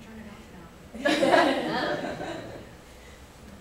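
A small group of people laughs together briefly.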